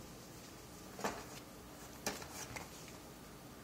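A plastic wrapper crinkles and rustles in hands.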